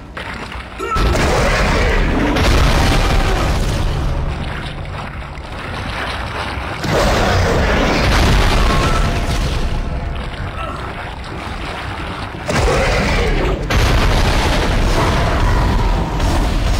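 A weapon fires in loud bursts.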